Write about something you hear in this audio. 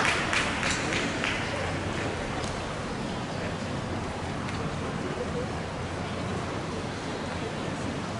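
A crowd of young people chatters in a large echoing hall.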